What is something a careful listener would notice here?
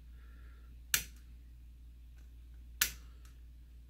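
A small tool taps against a circuit board.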